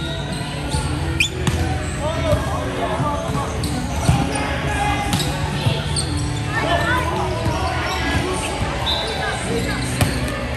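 Young women players call out to each other in a large echoing hall.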